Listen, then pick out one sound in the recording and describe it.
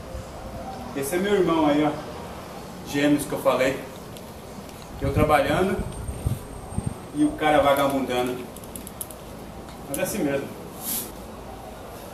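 An adult man speaks close by.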